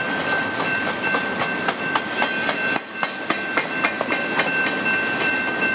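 Train wheels clack and knock over the rail joints.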